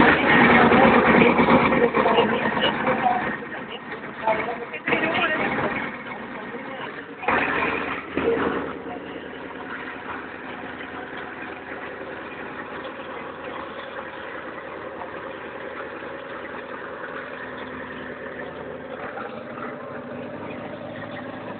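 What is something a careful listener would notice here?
Tracked armoured vehicles rumble and clank past close by.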